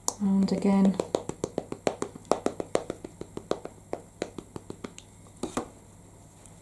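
An ink pad dabs and taps quickly on paper.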